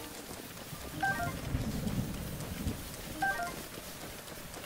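A short chiming jingle plays twice.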